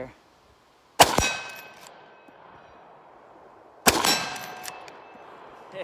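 A rifle fires a loud shot outdoors that echoes away.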